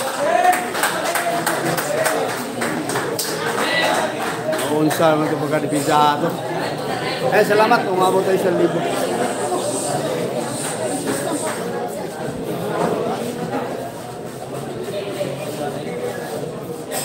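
A crowd of young men chatters and calls out nearby.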